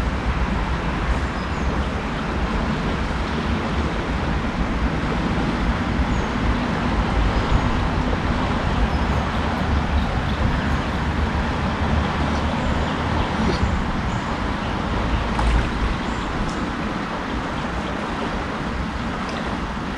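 Wind rumbles across the outdoors.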